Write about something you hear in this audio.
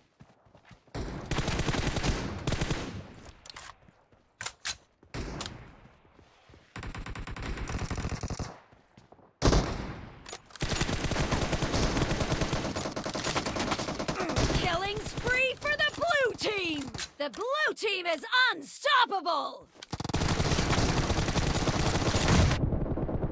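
Rapid bursts of gunfire crackle.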